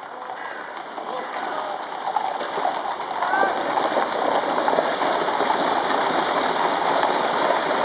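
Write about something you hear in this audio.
Heavy wooden wheels of a gun carriage rumble and rattle along the road.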